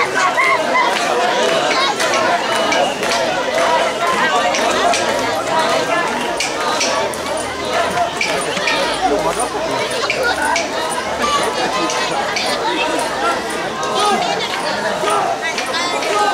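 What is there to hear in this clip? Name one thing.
A large crowd of men and women chant and shout rhythmically outdoors.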